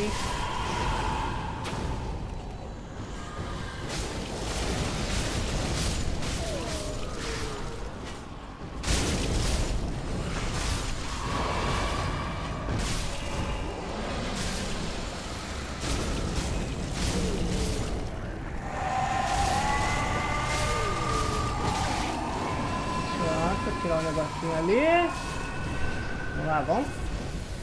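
A sword slashes and strikes against foes.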